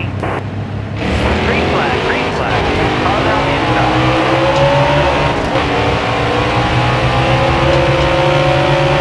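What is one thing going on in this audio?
A race car engine roars and rises in pitch as the car speeds up.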